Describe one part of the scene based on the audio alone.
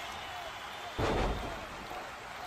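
A body slams heavily onto a wrestling mat with a thud.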